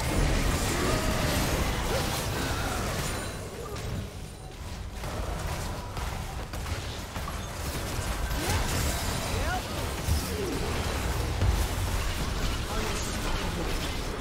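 Game spells whoosh and clash in a busy fight.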